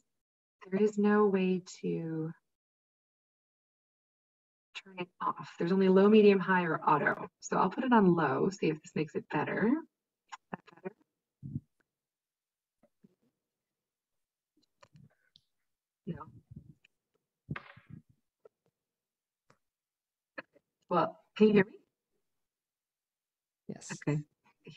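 A young woman speaks calmly over an online call, close to the microphone.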